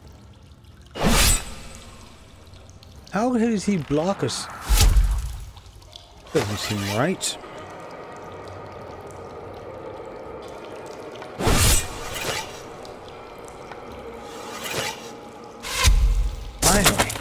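Sharp blows and crashes of a fight strike now and then.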